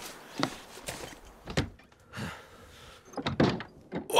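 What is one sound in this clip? A wooden door opens with a creak.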